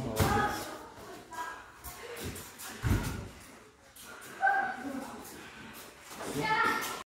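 Feet thump and shuffle on a padded floor.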